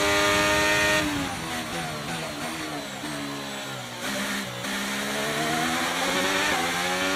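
A racing car engine winds down while braking for a corner, then climbs again.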